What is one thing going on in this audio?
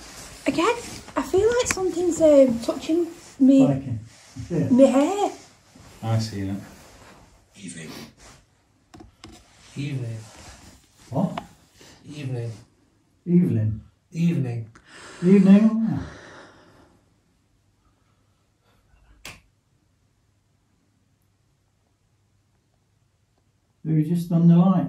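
A man speaks in a low, hushed voice close by, with pauses.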